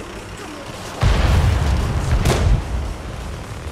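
A tank engine roars louder for a moment.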